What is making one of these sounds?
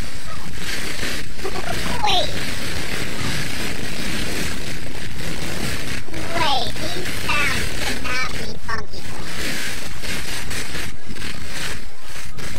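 A motorbike engine whines as it races along a track.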